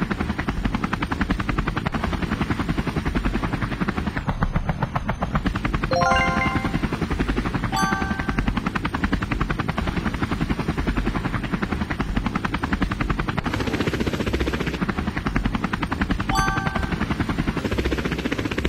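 A helicopter's rotor chops steadily and rapidly overhead.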